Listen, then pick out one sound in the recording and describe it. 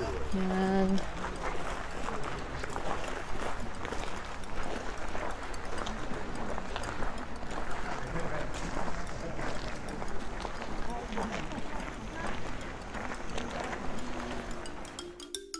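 A crowd of adult visitors chatters and murmurs outdoors.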